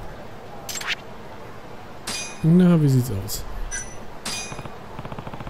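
A game menu gives short electronic chimes.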